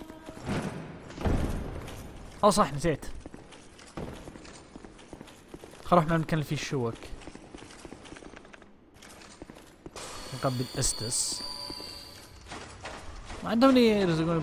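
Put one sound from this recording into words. Armoured footsteps run on stone.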